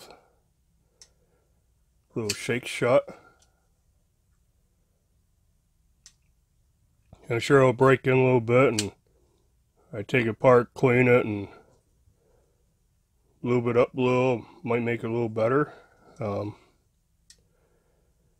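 A folding knife's blade clicks as it opens and locks.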